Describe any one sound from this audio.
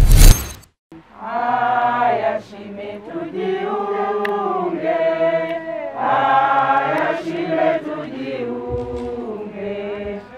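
A crowd of men and women sings slowly together outdoors.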